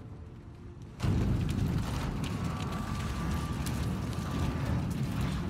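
A heavy wooden crate scrapes and grinds across stone.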